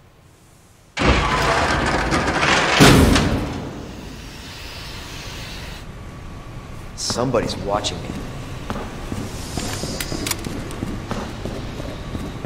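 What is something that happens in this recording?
Steam hisses loudly.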